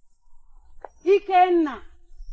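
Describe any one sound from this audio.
A woman speaks in a raised voice close by.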